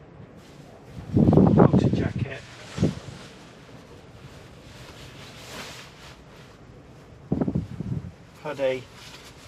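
A puffy jacket rustles as a man pulls it on.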